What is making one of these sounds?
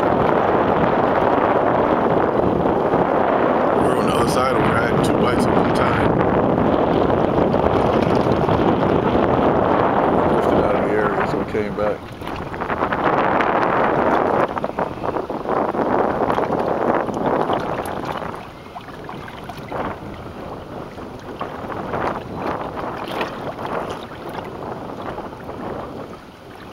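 Small waves lap and splash against a boat's hull.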